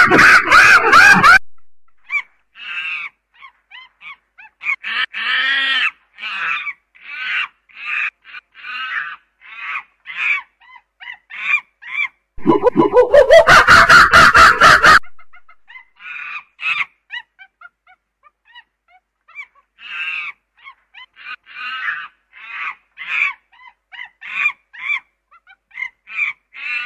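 A chimpanzee hoots and screams loudly in bursts.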